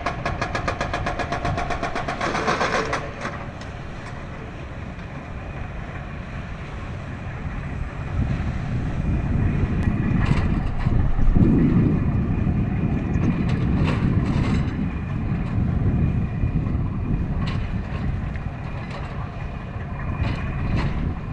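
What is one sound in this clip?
A boat engine rumbles steadily on the water.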